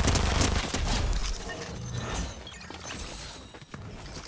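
Footsteps thud quickly on rocky ground in a video game.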